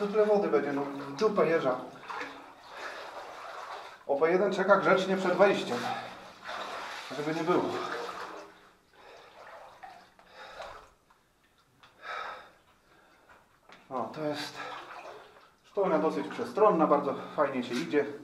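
Water splashes as a person wades through a shallow stream.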